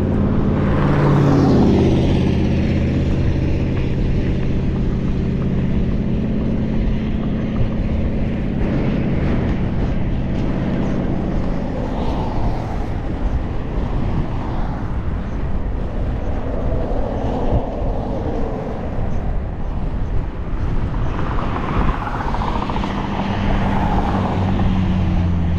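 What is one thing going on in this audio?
Wind buffets loudly and rumbles throughout.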